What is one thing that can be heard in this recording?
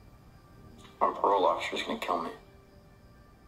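A young man speaks through an online call.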